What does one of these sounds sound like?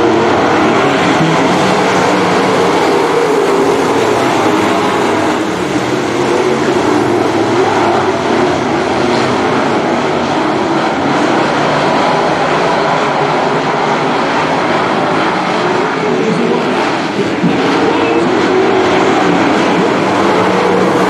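Race car engines roar loudly as the cars speed around a dirt track.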